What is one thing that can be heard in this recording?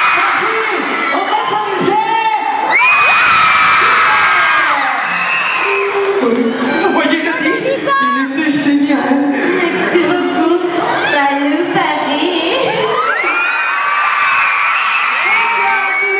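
A crowd of young fans screams loudly in a large echoing hall.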